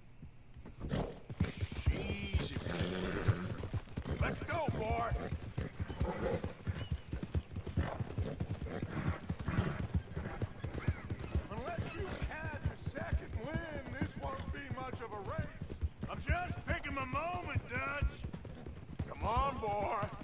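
A horse gallops with quick hoofbeats on a dirt track.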